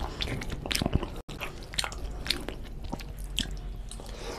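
A man chews food wetly and loudly close to a microphone.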